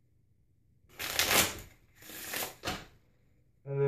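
Playing cards riffle and flutter as they are shuffled.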